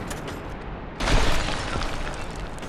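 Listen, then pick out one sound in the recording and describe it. A heavy body lands with a loud thud and clatter of armor.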